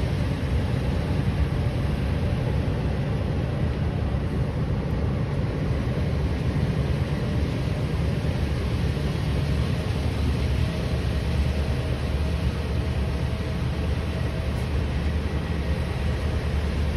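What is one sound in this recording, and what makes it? Wind blows steadily, rumbling outdoors.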